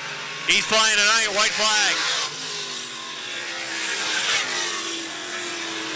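Race car engines roar and whine as the cars speed around a track.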